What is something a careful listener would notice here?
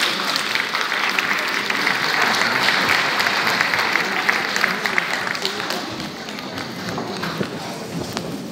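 An audience applauds loudly in a large hall, then the clapping fades.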